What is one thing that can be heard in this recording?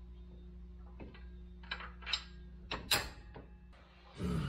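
Metal parts clink and knock under a vehicle.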